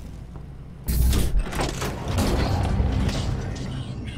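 A heavy metal door clanks and grinds open.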